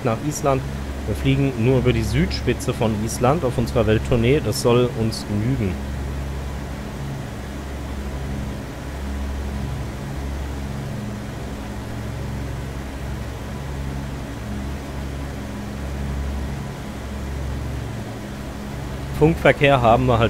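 Aircraft engines drone steadily.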